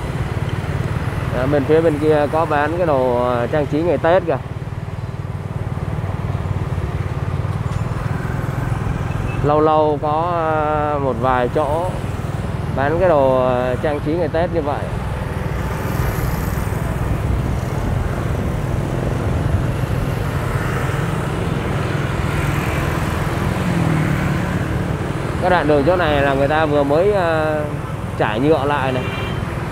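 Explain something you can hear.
Passing motorbikes whir along a busy street.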